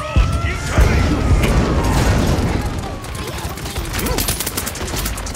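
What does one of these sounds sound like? Video game gunfire and energy blasts crackle and boom in rapid bursts.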